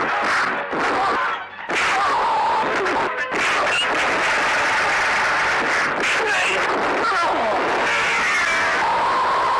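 Men grunt and shout as they fight.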